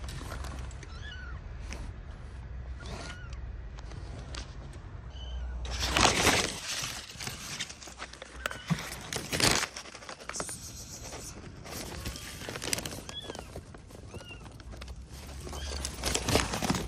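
A kitten meows in short, high cries.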